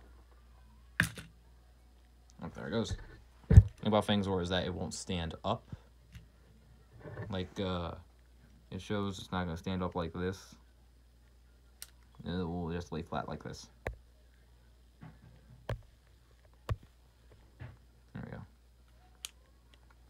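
Hard plastic pieces click and snap together.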